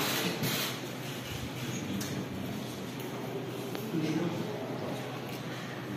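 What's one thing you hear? Men talk quietly nearby amid a low murmur of voices.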